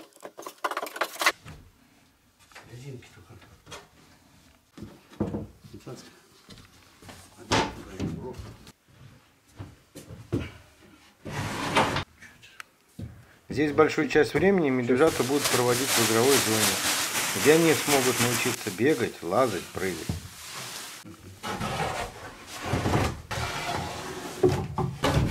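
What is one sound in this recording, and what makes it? Wooden boards knock and clatter.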